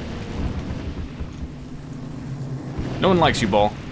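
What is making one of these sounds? A fireball bursts with a loud roar.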